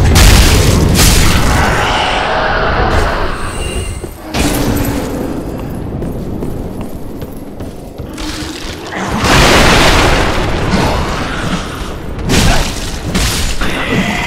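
A blade slashes and strikes an armoured enemy.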